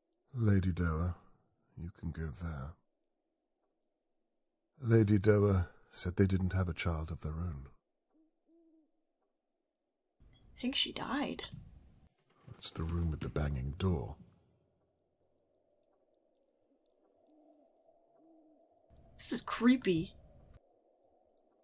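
A young woman talks casually into a close microphone, in short bursts with pauses.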